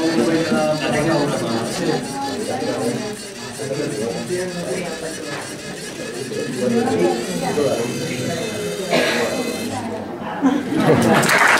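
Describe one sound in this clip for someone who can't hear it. Several adults talk and murmur nearby.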